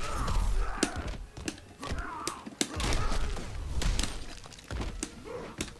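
Punches and kicks land with sharp thuds and cracks.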